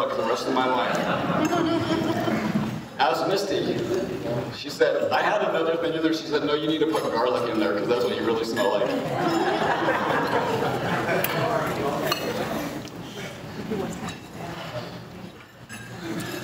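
A young man speaks steadily into a microphone, heard through loudspeakers in an echoing hall.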